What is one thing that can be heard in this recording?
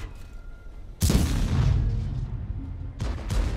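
Explosions rumble and crackle.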